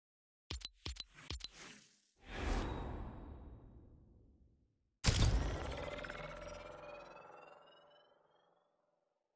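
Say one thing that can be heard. Video game menu sounds click and whoosh.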